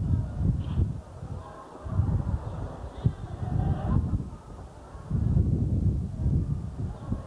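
Wind gusts rumble against the microphone outdoors.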